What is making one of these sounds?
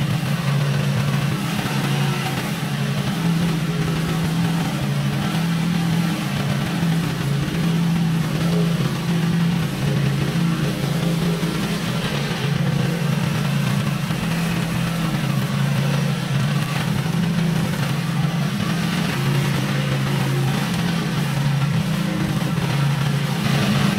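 A petrol mower engine drones steadily close by.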